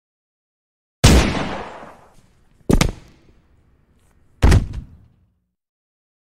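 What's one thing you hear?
A gun fires loudly with a ringing echo.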